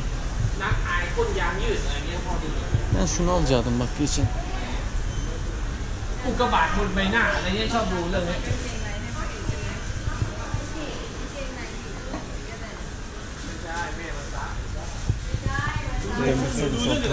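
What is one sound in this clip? Voices murmur in the background of a busy indoor hall.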